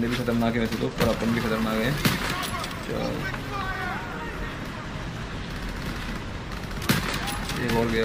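A rifle fires sharp single shots.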